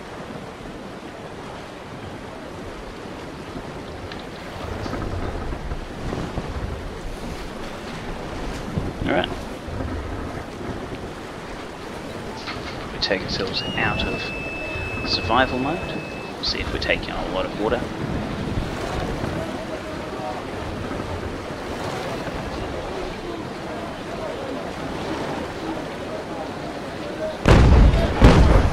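Waves wash and rush against a ship's hull.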